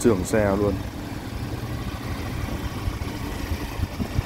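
A truck engine rumbles low nearby.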